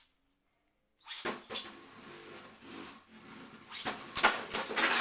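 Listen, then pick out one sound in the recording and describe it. A spinning top whirs and skitters across a plastic arena.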